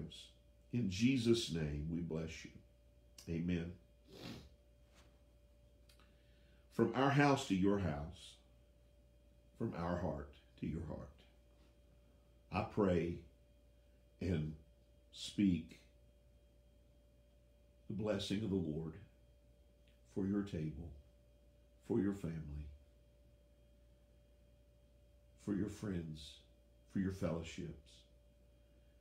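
An elderly man speaks calmly in short phrases with pauses, close to a microphone.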